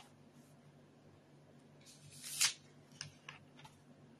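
Paper pages rustle as a man turns them.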